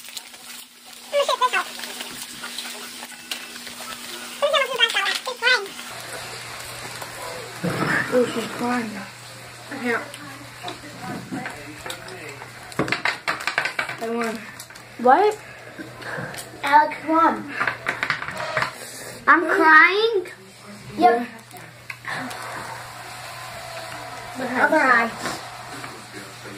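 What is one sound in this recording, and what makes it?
Children talk and exclaim with animation close by.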